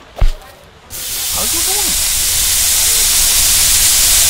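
Meat patties sizzle loudly on a hot grill.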